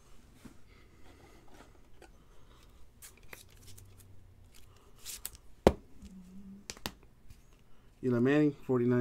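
Trading cards rustle and flick in someone's hands.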